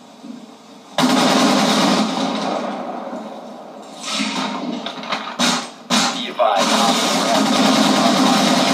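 Loud, rushing game sound effects play through a television speaker.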